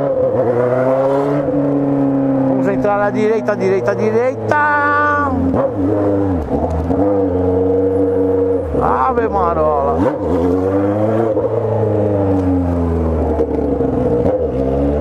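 A motorcycle engine hums and revs up and down close by.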